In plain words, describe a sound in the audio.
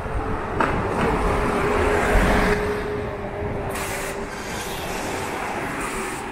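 A bus engine hums steadily close by.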